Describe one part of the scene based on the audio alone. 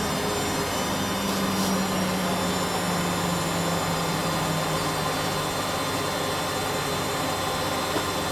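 A washing machine spins fast with a loud steady whir and rumble.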